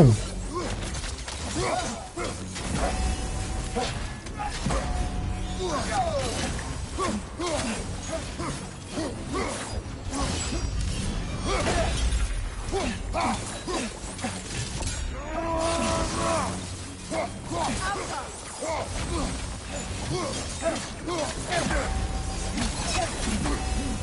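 Heavy thuds and impacts land during the fight.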